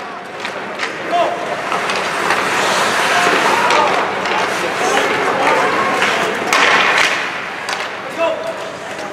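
A crowd of spectators cheers and shouts in an echoing arena.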